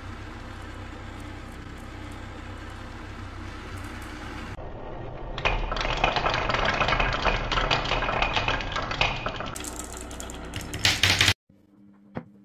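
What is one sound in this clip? Glass marbles roll and rumble around a wooden spiral track.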